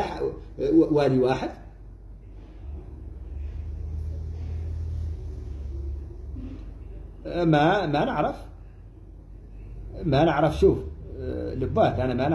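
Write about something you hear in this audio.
A middle-aged man speaks close up, calmly and with pauses.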